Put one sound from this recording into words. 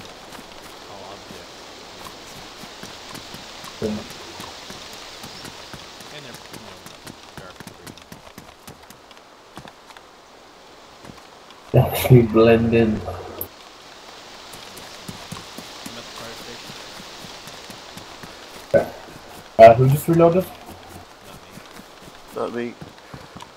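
Boots run over concrete.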